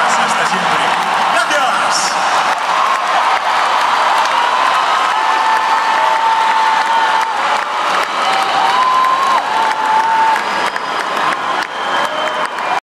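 A crowd cheers and shouts nearby.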